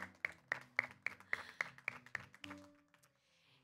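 A woman claps her hands in a quick, steady rhythm.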